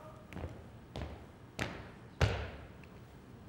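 Boots stamp on a wooden stage.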